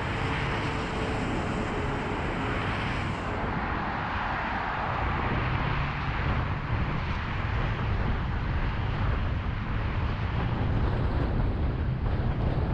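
A car engine rumbles low from inside a moving vehicle.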